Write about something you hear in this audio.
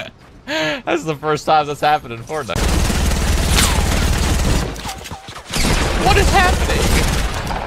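A young man talks excitedly into a microphone.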